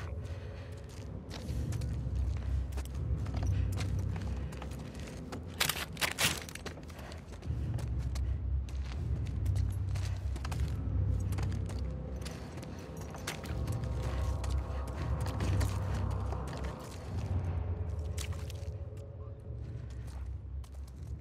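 Footsteps walk slowly across a hard floor.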